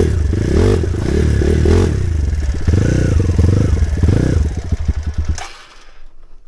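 A motorbike engine revs loudly up close.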